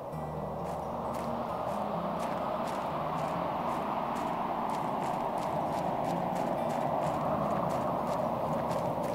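Footsteps crunch on sand at a steady walking pace.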